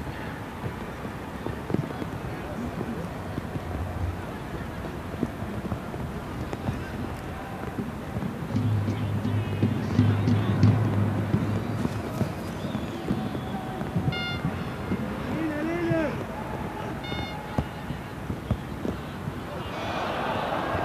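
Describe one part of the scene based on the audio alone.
A stadium crowd murmurs in the distance.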